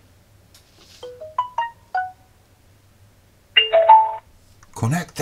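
Short electronic beeps chime from a small speaker.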